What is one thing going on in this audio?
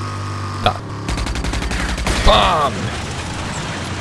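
Wreckage crashes and clatters as a vehicle smashes through it.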